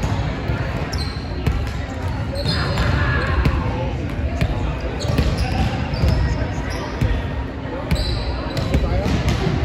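Shoes squeak on a hardwood floor.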